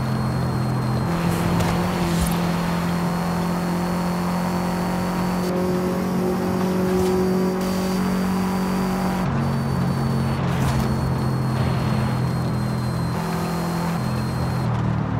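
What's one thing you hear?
A car engine roars steadily at high speed, shifting pitch as it changes gears.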